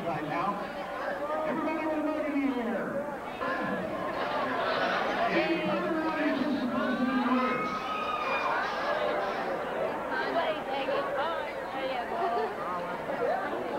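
A crowd of men and women chatters and laughs in a large hall.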